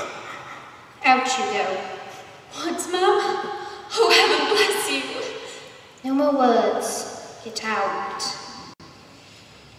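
A young woman speaks loudly and with feeling.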